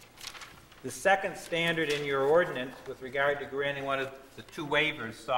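A man speaks into a microphone in a calm, formal voice.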